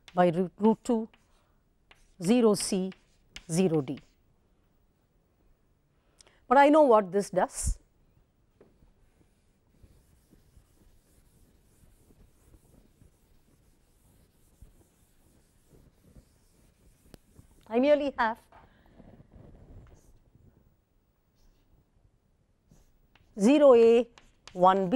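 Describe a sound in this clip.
A woman speaks calmly and clearly, close to a microphone, in short phrases with pauses.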